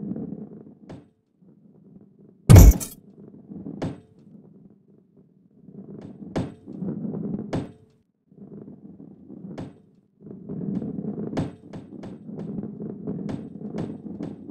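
A ball rolls with a low rumble.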